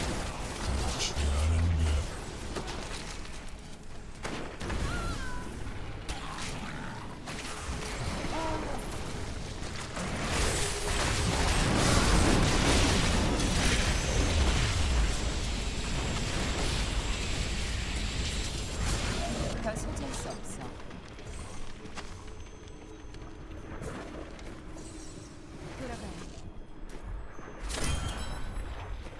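Fiery spells crackle and explode in rapid bursts.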